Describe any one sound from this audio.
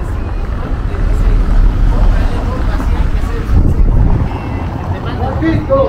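A car drives slowly past over cobblestones.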